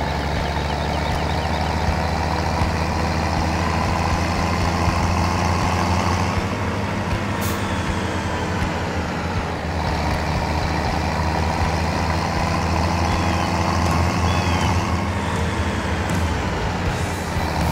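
A tractor engine rumbles steadily as it drives.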